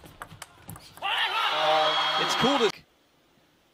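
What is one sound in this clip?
A crowd cheers loudly in a large hall.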